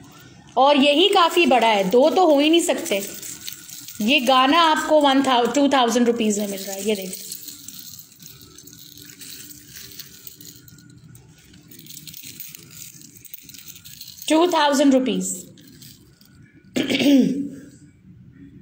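Metal ornaments and beads jingle softly as they are handled.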